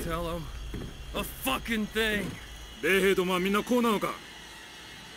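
A man shouts angrily, heard close.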